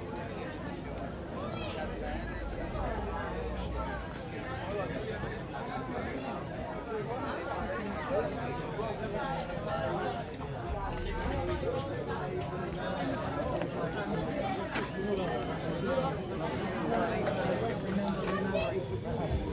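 Footsteps shuffle on stone steps.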